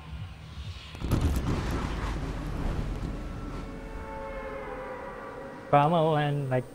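Wind rushes loudly past during a fast fall, then fades.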